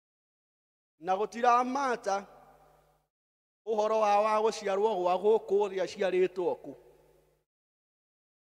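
A middle-aged man preaches with emphasis into a microphone, his voice echoing in a room.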